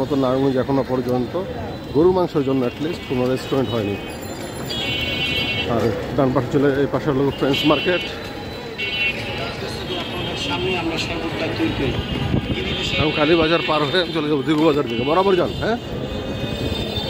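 Men talk loudly nearby.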